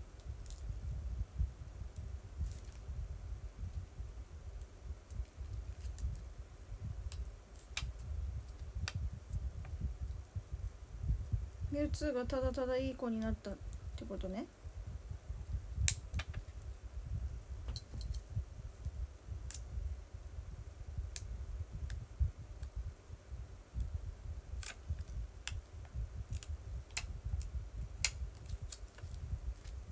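Plastic crinkles and clicks sharply between fingers.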